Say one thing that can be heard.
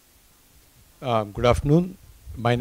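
A second elderly man speaks into a microphone.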